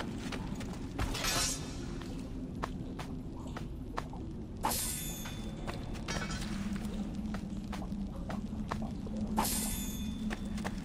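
Cloth rustles as a body is searched.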